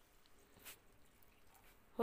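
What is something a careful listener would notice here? Water pours into a pan.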